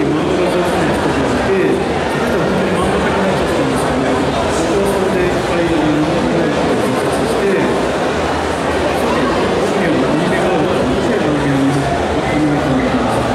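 A man speaks with animation through a microphone over loudspeakers in a large echoing space.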